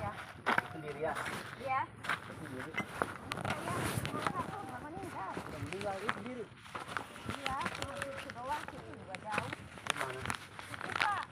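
Footsteps crunch over loose rubble and litter.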